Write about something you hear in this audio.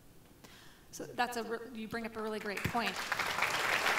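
An elderly woman speaks with animation into a microphone.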